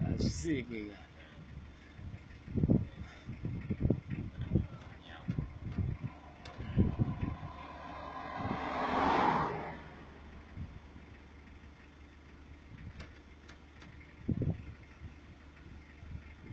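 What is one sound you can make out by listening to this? A pickup truck rumbles steadily along a road.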